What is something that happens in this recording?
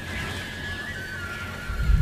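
A sword's hilt rattles as a hand grips it.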